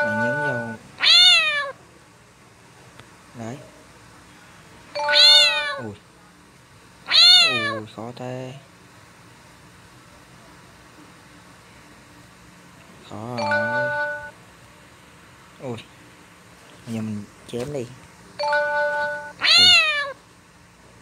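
A cartoon cat yowls angrily in short rising and falling cries.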